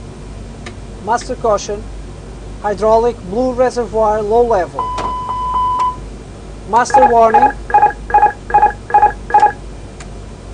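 A man speaks briefly and calmly through a headset radio.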